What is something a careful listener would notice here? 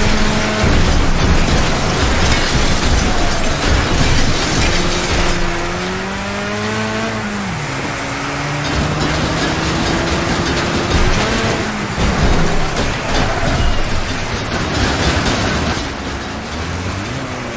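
A car engine roars and changes pitch as it speeds up and slows down.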